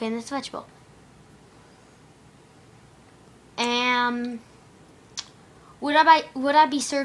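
A young boy talks nearby, in short bursts.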